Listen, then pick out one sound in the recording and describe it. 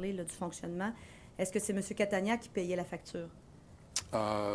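A woman speaks clearly into a microphone in a formal tone.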